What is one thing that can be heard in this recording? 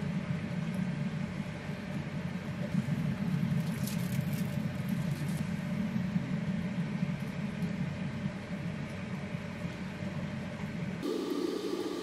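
Tongs scrape and stir noodles in a pan.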